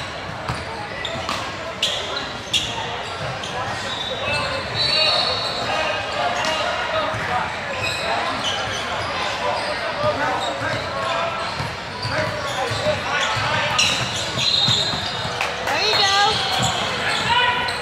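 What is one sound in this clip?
A crowd of spectators chatters throughout a large echoing hall.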